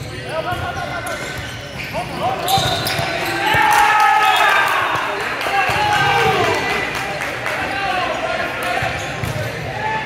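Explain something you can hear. Sneakers squeak sharply on a court floor in a large echoing hall.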